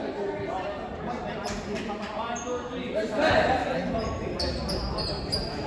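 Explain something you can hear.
A crowd of young players and spectators chatters in a large echoing gym.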